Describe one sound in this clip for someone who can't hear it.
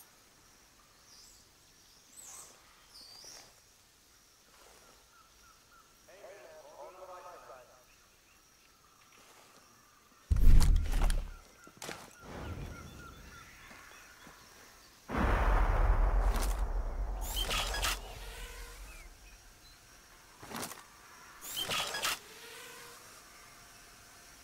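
Grass rustles as someone creeps through it.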